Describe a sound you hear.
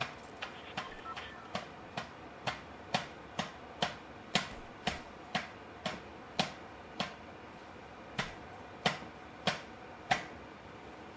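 A pickaxe strikes wood with sharp, steady, repeated knocks.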